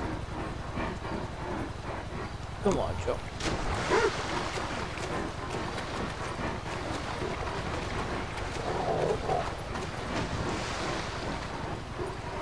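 Water splashes and sloshes as someone wades through a stream.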